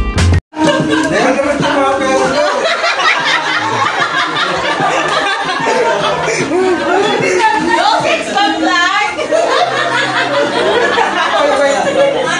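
A young boy sings loudly and close by.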